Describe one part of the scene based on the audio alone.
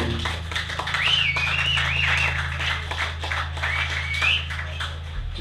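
An electric guitar squeals with feedback.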